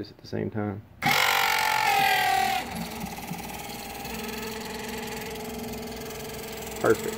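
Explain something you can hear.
An electric pump hums steadily.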